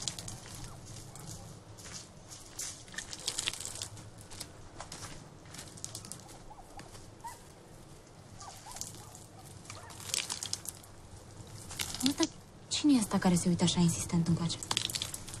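Water splashes from a jug.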